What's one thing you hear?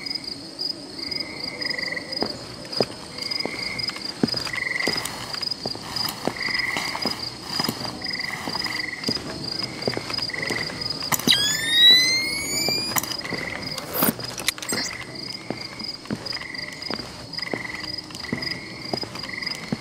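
Soft footsteps tap on a hard floor.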